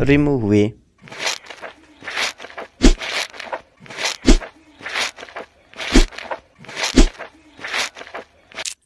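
Tweezers squelch as they pull at soft skin.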